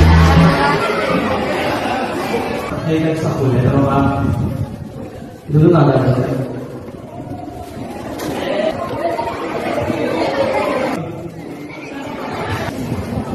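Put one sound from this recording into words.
A man speaks through a microphone over loudspeakers in an echoing hall.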